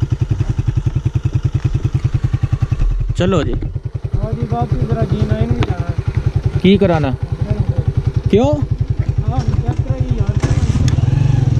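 A motorcycle engine idles with a steady, rapid putter.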